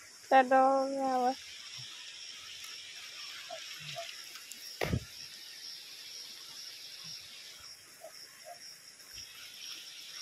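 A shallow stream flows and trickles steadily.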